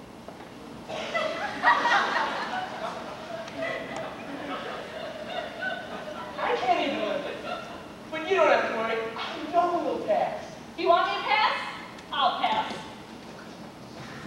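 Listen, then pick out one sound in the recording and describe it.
A young woman sings on a stage.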